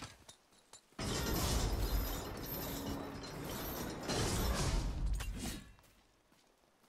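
A heavy wooden gate rumbles and clatters as it rises open.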